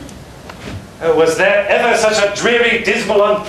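Another adult man answers loudly across the stage.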